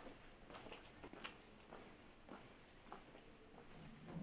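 Footsteps tap on a stone floor outdoors.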